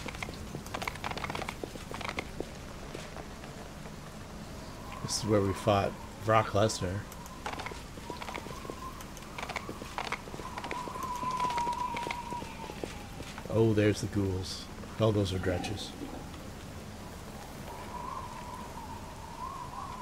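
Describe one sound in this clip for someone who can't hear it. Footsteps patter on stone as a group walks.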